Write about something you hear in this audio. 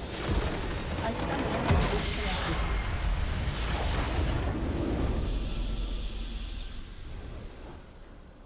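A huge crystal structure shatters with a booming, rumbling explosion.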